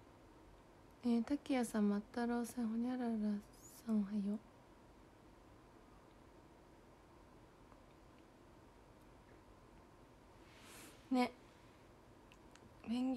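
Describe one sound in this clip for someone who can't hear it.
A young woman speaks softly and close to a phone microphone.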